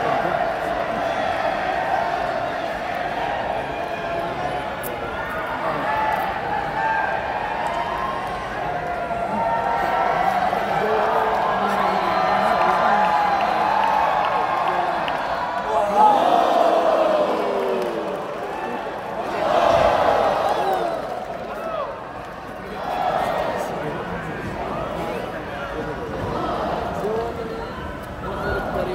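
A large arena crowd cheers and chants in a large echoing hall.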